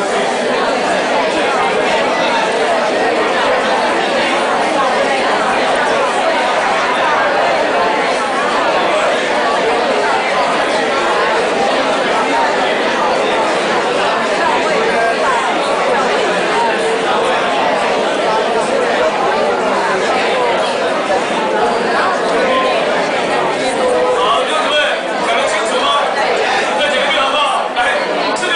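A man speaks steadily into a microphone, heard through loudspeakers in a large echoing room.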